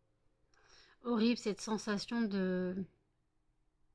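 A woman speaks briefly and calmly, close to a microphone.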